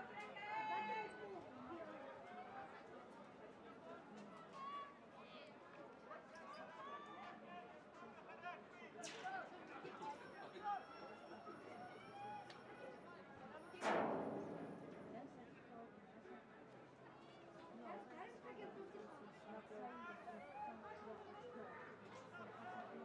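Young men shout and call out to one another outdoors.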